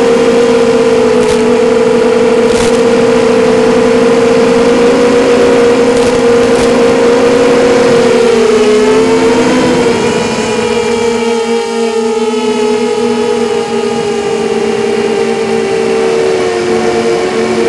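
Drone motors whine steadily, shifting in pitch as the drone flies low and fast.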